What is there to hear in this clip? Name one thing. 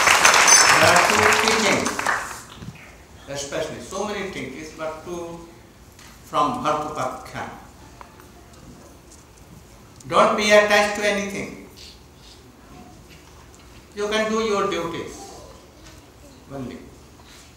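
An elderly man speaks calmly into a microphone, in short phrases with pauses.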